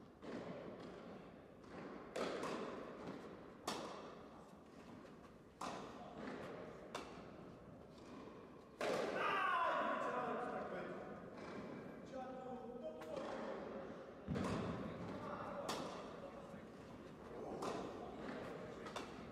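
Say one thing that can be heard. Rackets strike a tennis ball back and forth in an echoing hall.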